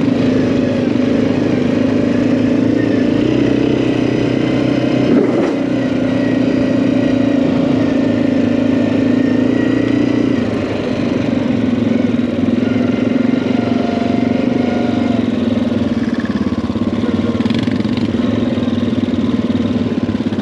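Tyres rumble over a rough dirt track.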